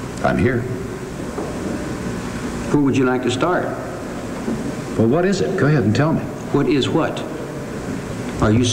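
A man speaks slowly and haltingly in a low voice, heard through a microphone.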